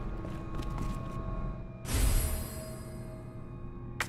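A key is picked up with a short rustle and jingle.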